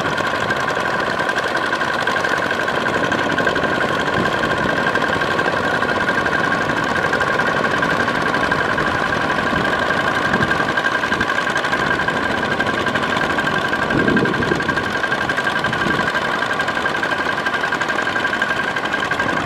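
A small tiller engine drones steadily nearby.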